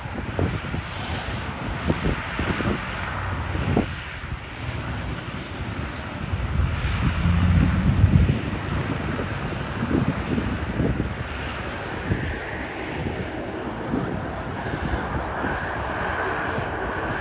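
A propeller plane's engines drone steadily nearby.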